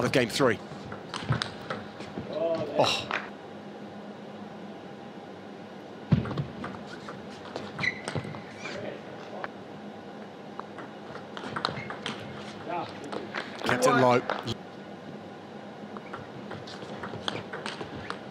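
A ping pong ball clicks back and forth off paddles and the table in a large echoing hall.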